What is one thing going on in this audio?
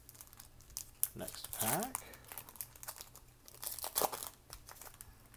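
Foil wrapping crinkles as a pack is torn open.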